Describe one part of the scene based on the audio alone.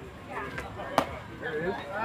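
A bat hits a ball with a sharp crack.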